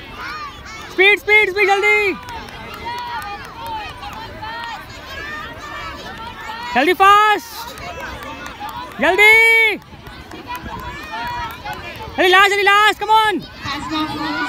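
Young children cheer and shout loudly in bursts.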